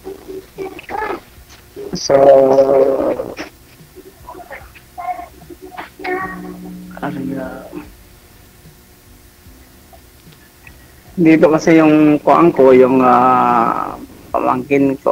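A woman talks over an online call.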